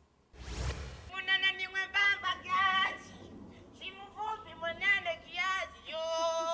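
A man speaks with animation to a crowd outdoors.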